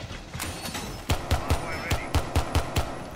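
Gunshots fire in quick, sharp bursts.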